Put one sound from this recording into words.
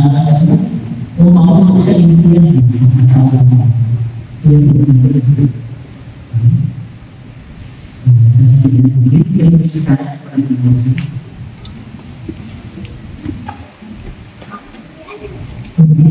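A man speaks calmly through a microphone in a room with a slight echo.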